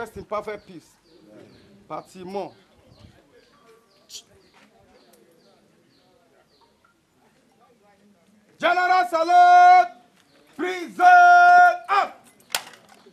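A man shouts drill commands loudly outdoors.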